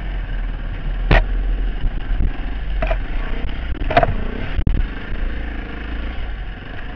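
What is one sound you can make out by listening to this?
A dirt bike engine revs loudly up close.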